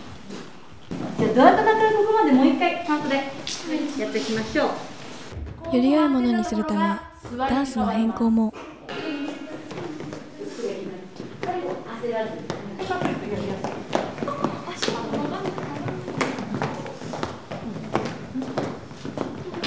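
Feet thump and shuffle on a wooden floor as dancers move.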